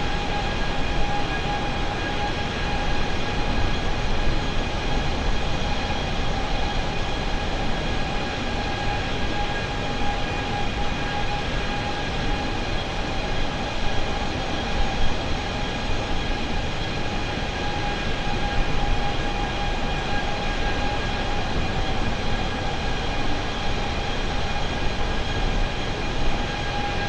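Jet engines hum and whine steadily as an airliner cruises.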